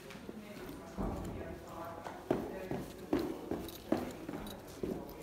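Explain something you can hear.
Footsteps thump up stairs.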